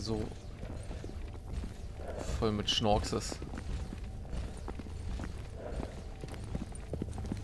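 Footsteps crunch slowly on rough ground.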